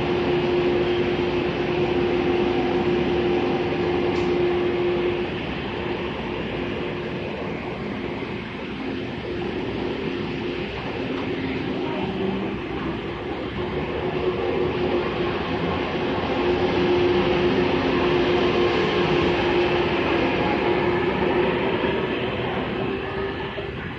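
A train's engine hums with a steady drone.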